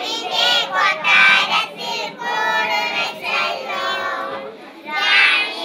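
A group of children sing together.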